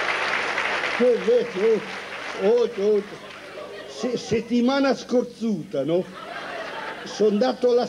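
An elderly man sings loudly into a microphone.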